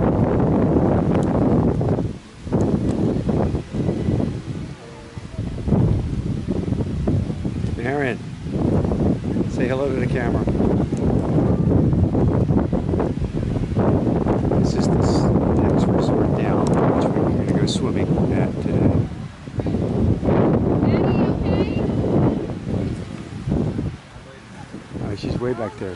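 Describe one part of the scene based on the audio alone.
Strong wind buffets the microphone outdoors.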